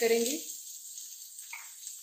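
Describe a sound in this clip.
Chopped vegetables drop into a frying pan.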